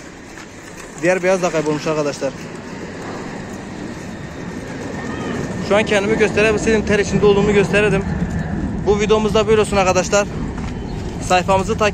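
Pigeons coo softly.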